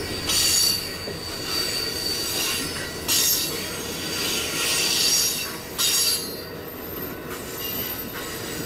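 Wheels squeal with a high screech on the track.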